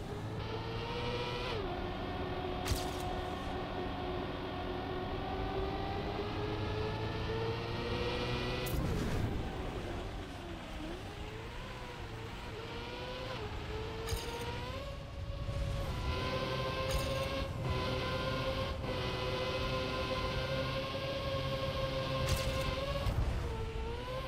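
A racing car engine whines steadily, rising and falling in pitch as the car speeds up and slows down.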